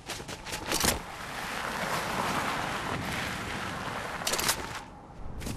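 A body slides down a snowy slope with a soft hiss.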